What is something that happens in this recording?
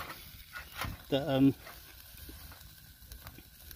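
A metal fork clicks against a grill grate.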